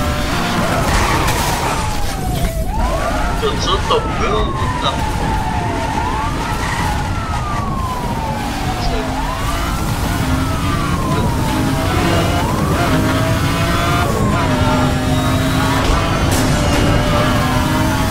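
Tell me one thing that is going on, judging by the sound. A powerful car engine roars and revs up repeatedly through the gears.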